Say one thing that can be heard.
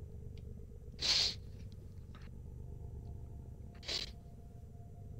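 Soft whooshing menu sounds play as a list scrolls.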